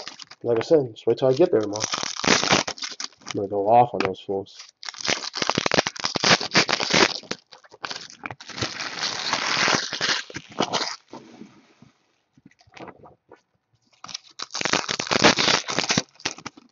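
Foil card packs crinkle and rustle as hands sort through them.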